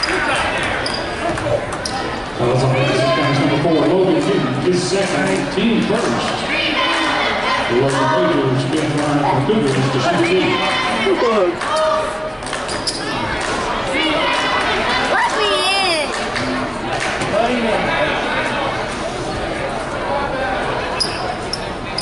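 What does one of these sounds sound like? A crowd of spectators chatters and murmurs in a large echoing gym.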